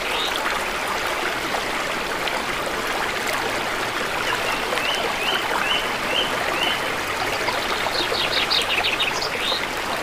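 A plastic cap taps and presses softly against damp clay.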